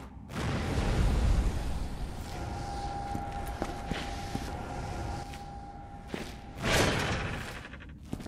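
A gun fires a few shots.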